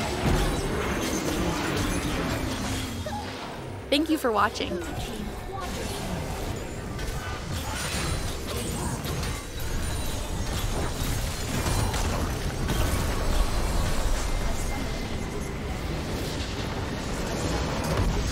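Spell blasts and weapon hits clash in a busy game battle.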